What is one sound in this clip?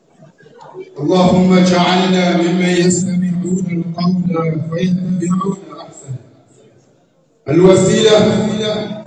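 A young man chants loudly into a microphone over a loudspeaker, echoing in a large hall.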